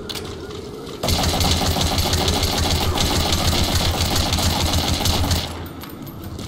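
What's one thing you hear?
A gun fires repeated shots at close range.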